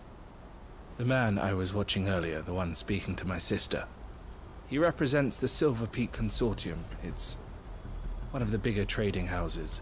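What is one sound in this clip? A young man speaks calmly.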